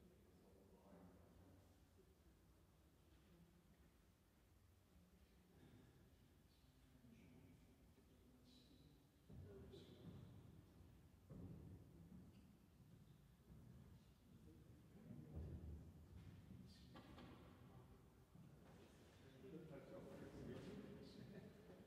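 A pipe organ plays slow, sustained chords that echo through a large hall.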